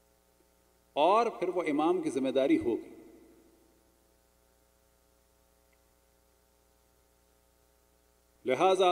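A man chants in a melodic voice through a microphone, echoing in a large hall.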